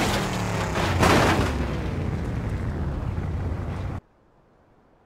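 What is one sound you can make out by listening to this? An explosion roars and rumbles.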